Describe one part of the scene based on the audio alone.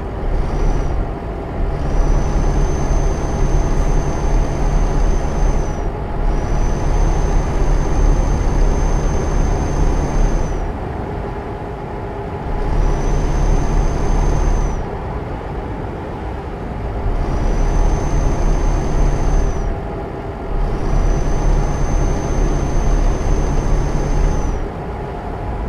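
A truck engine rumbles steadily, rising and falling in waves.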